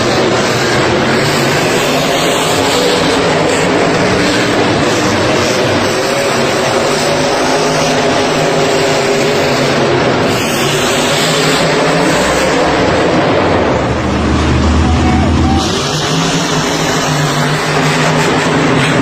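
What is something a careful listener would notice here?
Monster truck engines roar loudly, echoing through a large arena.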